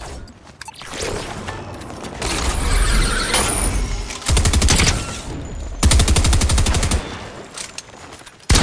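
Rapid gunfire rattles in loud bursts.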